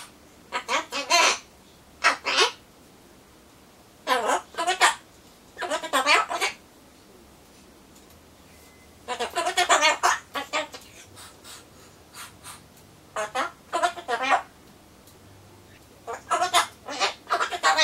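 A cockatoo squawks and chatters in loud bursts close by.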